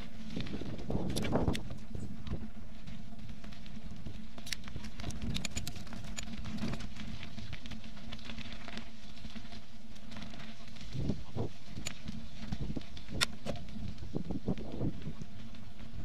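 Wind rumbles against a moving bicycle.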